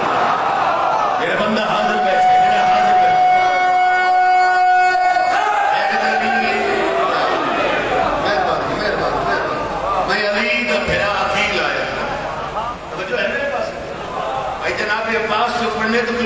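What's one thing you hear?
A man chants loudly through a microphone in a reverberant hall.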